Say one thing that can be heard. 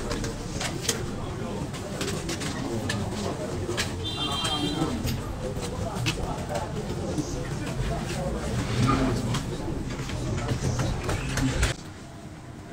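A crowd of men and women chatter close by.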